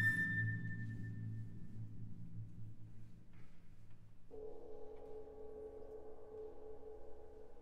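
An orchestra plays soft, sustained notes in a large hall.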